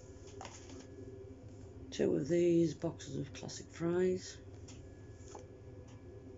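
Cardboard packaging rustles and taps as it is handled.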